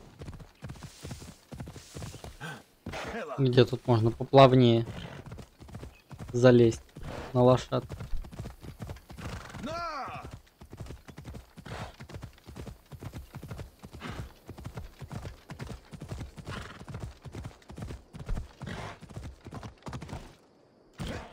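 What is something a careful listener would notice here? A horse gallops with quick, heavy hoofbeats on the ground.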